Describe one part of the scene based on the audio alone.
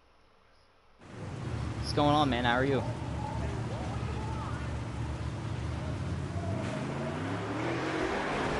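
Race car engines idle with a low, steady rumble.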